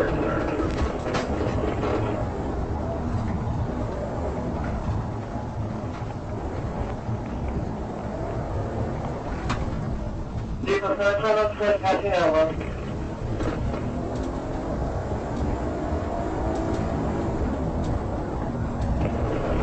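A car engine roars steadily at speed.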